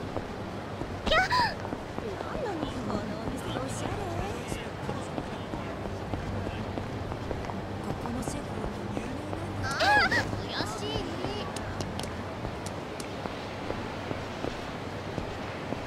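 Footsteps walk on a hard street.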